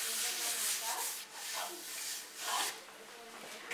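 A hand rubs and swishes across a wooden board.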